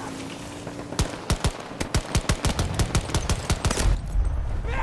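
A pistol fires a rapid string of shots.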